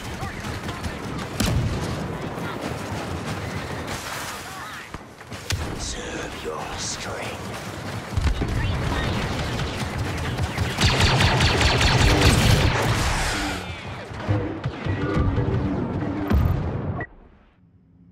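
Blaster rifles fire in rapid bursts.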